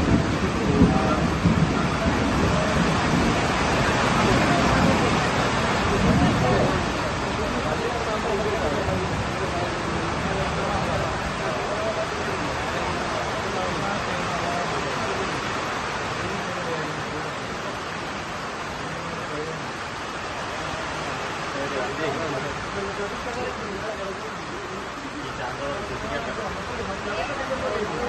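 Steady rain falls outdoors.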